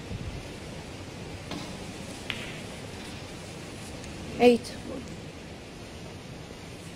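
Snooker balls click together on a table.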